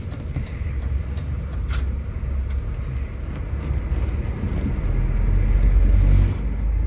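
Small rattles and clicks come from inside the bus as it drives.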